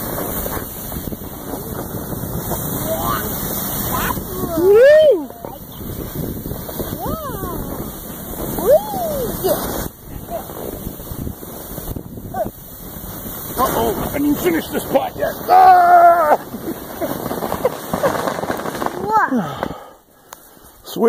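A sled scrapes and hisses over snow.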